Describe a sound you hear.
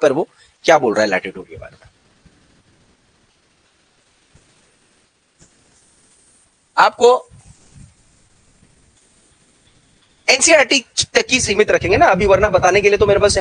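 A man speaks through a microphone, explaining at a steady pace.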